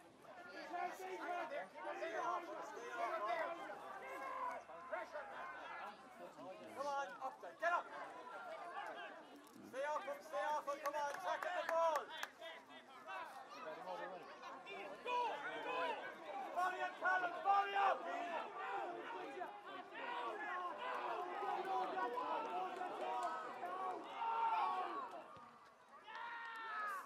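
A crowd of men and boys shout and cheer close by, outdoors.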